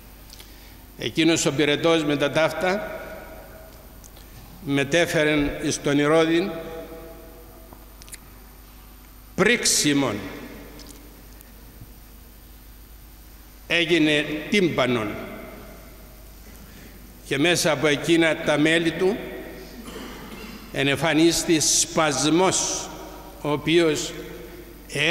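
An elderly man speaks calmly into a microphone in bursts, with pauses between phrases, in a reverberant room.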